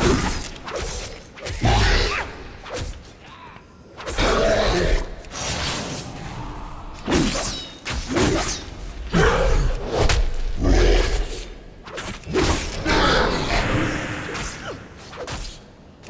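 Weapons strike and clash repeatedly in a fight.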